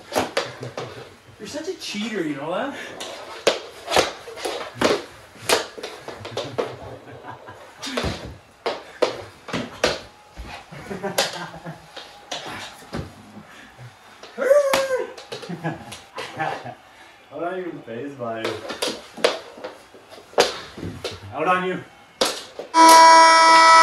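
Hockey sticks clack and scrape on a wooden floor.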